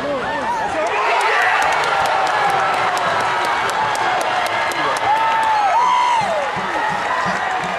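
Many people in a stadium crowd clap.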